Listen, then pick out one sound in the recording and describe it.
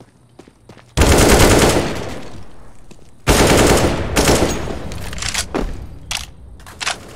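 Rifle shots fire in loud, rapid bursts.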